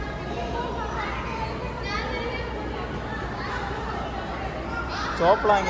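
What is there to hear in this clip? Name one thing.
Children chatter and call out in a busy, echoing indoor hall.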